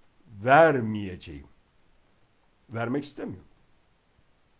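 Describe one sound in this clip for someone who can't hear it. A middle-aged man speaks with animation close to the microphone, in short bursts.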